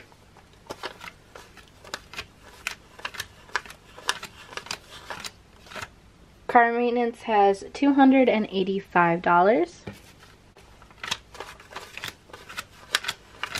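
Crisp paper bills rustle and flick as they are counted out one by one.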